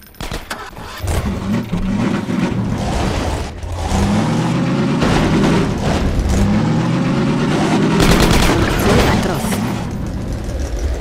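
A vehicle engine starts and rumbles, revving as it drives.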